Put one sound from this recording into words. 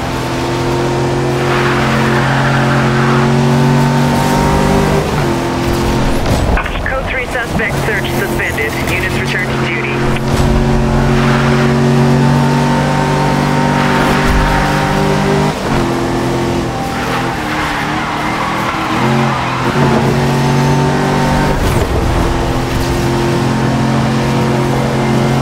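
A racing car engine roars steadily at high speed, dropping in pitch now and then as the gears shift.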